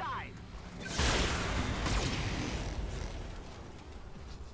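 A laser weapon fires with a loud, rushing hiss.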